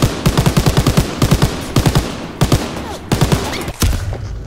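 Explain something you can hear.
A machine gun fires in rapid, loud bursts.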